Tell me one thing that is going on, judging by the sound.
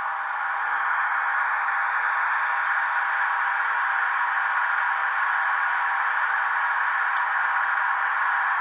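A small electric motor whirs steadily as a model railway turntable turns.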